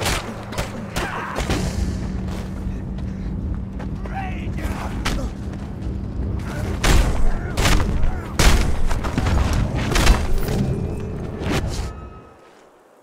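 Punches thud in a fist fight.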